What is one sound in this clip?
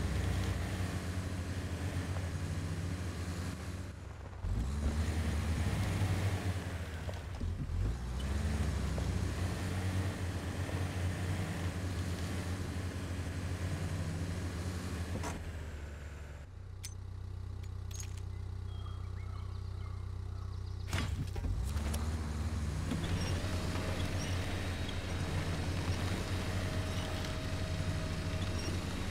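A heavy truck engine rumbles low and revs up now and then.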